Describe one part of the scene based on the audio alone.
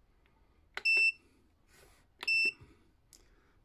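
A battery charger beeps twice with short high tones.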